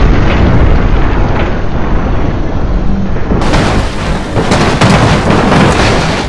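Cars crash and crunch metal against metal.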